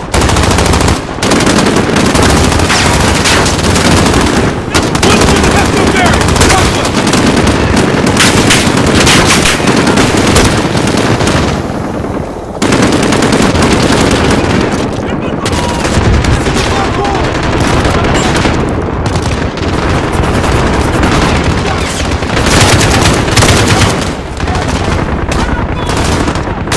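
Gunshots fire in rapid bursts, loud and close.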